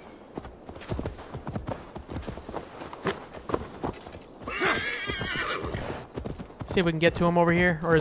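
A horse's hooves thud rhythmically on grass.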